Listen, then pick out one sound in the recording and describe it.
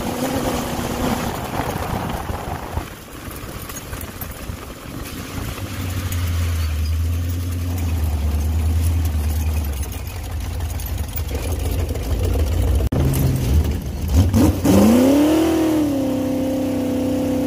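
A dune buggy engine rumbles and revs as the buggy drives over sand.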